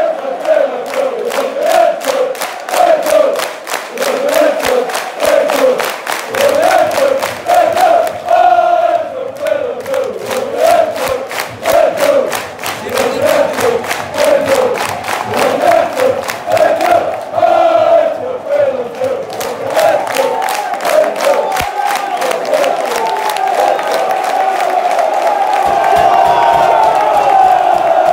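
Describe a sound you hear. A large crowd claps in a fast, steady rhythm.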